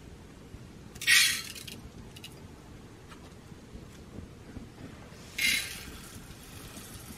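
Rice rattles as it is poured into a metal pot.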